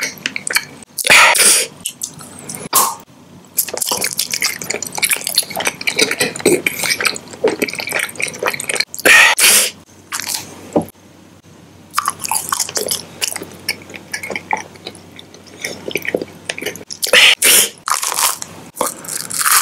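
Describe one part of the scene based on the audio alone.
A snack wrapper crinkles loudly right at the microphone.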